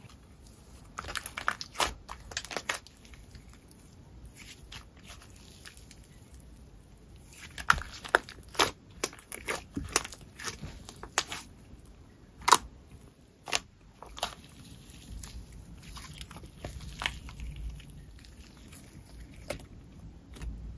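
Sticky slime squelches and pops close up as hands stretch and squeeze it.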